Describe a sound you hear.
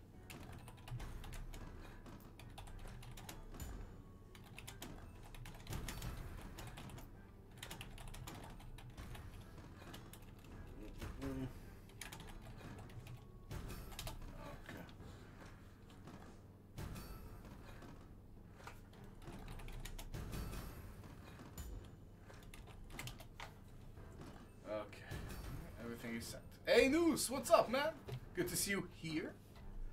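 A slot machine game plays jingles and chimes as its reels spin and pay out.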